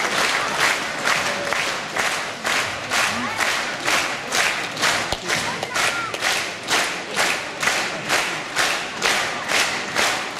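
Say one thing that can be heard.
A large crowd claps in steady rhythm in a big hall.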